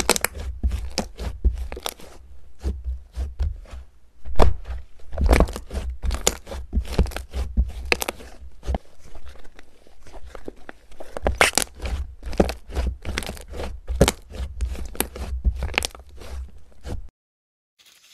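Hands squish and knead soft slime, with sticky popping and squelching.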